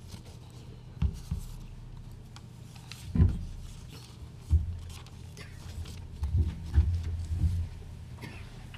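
Papers rustle and thump near a microphone.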